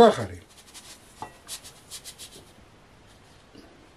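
Sugar pours into a glass bowl.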